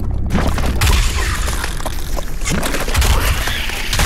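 A monster's flesh splatters wetly.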